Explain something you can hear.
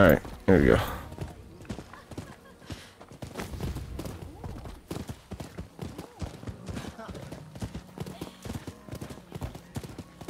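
Horse hooves gallop over hard ground.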